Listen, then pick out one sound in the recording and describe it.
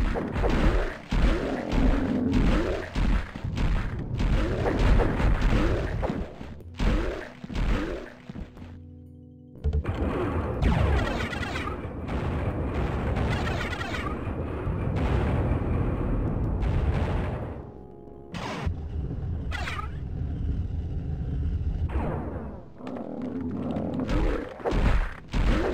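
Electric bolts crackle and zap in bursts.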